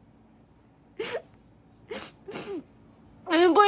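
A young woman sobs and sniffles close by.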